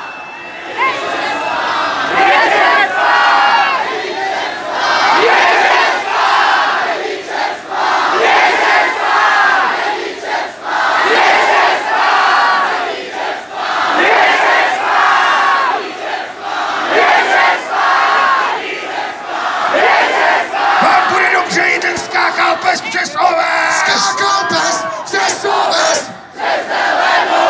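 A band plays loudly through loudspeakers outdoors.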